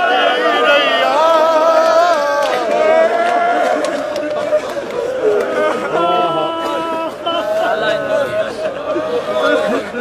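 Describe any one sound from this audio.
A young man sings a mournful chant loudly, close by.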